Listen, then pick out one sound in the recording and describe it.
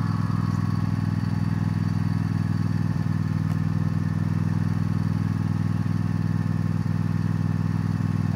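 A small engine idles steadily nearby.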